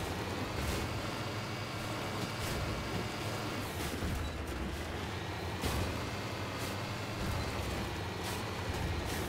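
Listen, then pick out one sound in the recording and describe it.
Heavy wheels thump and bounce over bumpy terrain.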